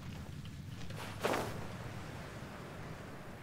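Wings whoosh open with a rush of air.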